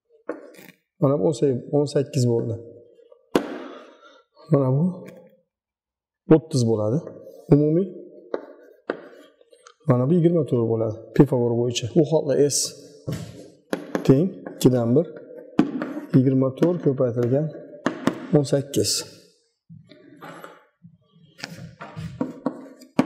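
A man speaks calmly and explains, close by.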